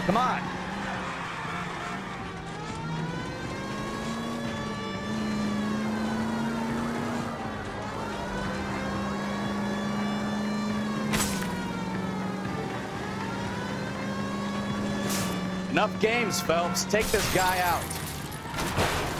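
A car engine hums steadily and revs up and down as the car drives.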